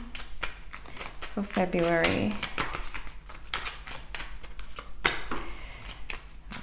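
Cards flick and slap as they are shuffled by hand.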